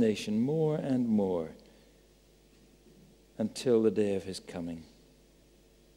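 A man reads aloud calmly into a microphone, with pauses between phrases.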